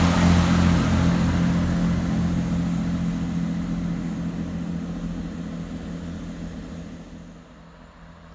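A train's engine rumbles loudly close by, then fades as the train pulls away.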